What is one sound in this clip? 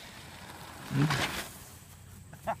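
A boy splashes and slides across a wet plastic sheet.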